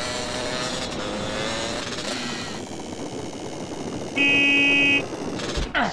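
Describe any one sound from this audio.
A motorcycle engine buzzes and revs.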